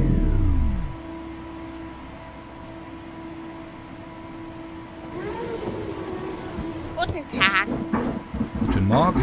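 An electric train motor hums steadily.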